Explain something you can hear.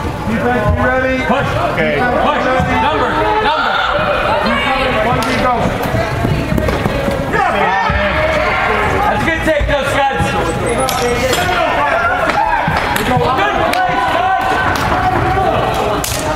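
Spectators close by shout and cheer in a large echoing hall.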